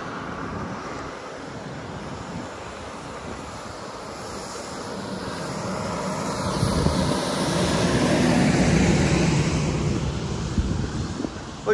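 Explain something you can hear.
A school bus engine rumbles as the bus approaches and passes close by.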